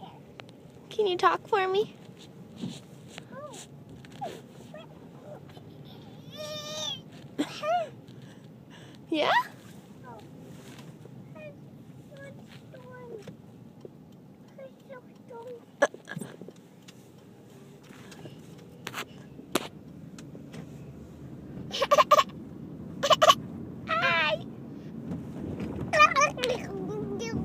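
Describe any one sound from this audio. A toddler girl squeals and babbles playfully up close.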